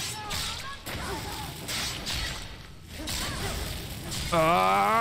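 A magic spell crackles and buzzes.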